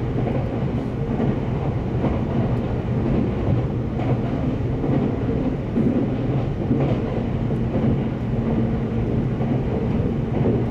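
A train rumbles steadily along the tracks, heard from inside a carriage.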